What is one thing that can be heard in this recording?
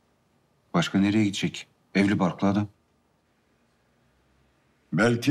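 A man speaks in short bursts, close by.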